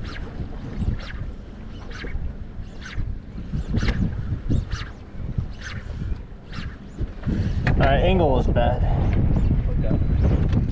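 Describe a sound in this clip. Small waves slap against a boat's hull.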